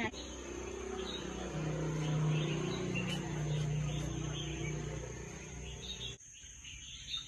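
A caged bird chirps and sings nearby.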